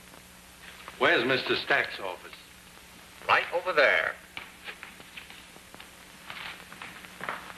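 A man speaks briskly, close by.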